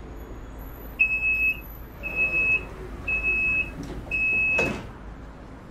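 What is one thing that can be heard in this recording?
Warning beeps sound from a train's doors in a quick, even series.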